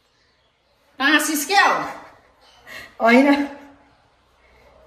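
A young woman talks and laughs loudly close to the microphone.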